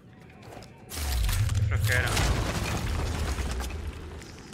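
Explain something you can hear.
Debris clatters and crashes down.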